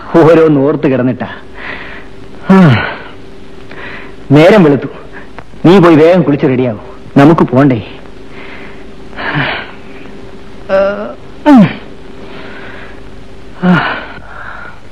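A woman sobs and wails in distress.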